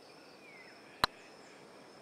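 A putter taps a golf ball with a sharp click.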